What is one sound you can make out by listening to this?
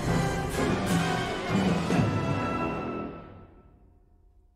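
A concert band plays a loud final chord that rings out and fades in a large echoing hall.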